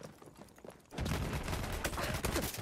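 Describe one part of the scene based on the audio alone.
A gun fires rapid bursts close by.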